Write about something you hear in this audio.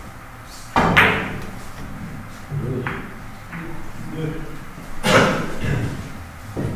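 Billiard balls clack against each other and the cushions.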